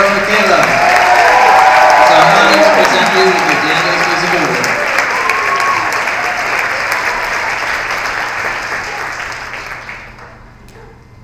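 An audience applauds loudly in a large hall, then the clapping fades.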